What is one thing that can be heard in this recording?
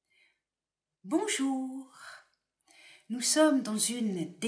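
An elderly woman speaks calmly and close to a microphone.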